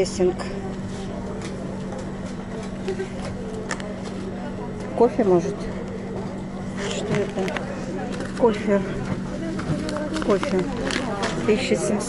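A foil bag crinkles and rustles in a hand.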